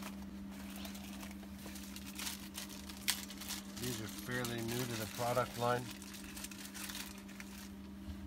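Plastic packaging crinkles in a man's hands.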